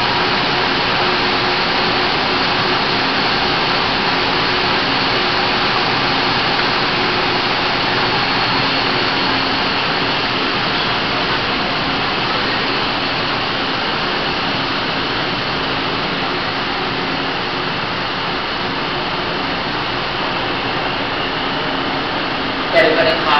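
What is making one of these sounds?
A train rolls past steadily, its wheels rumbling and clattering in an echoing underground station.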